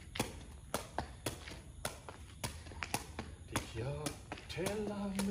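A ball thumps rhythmically against a foot.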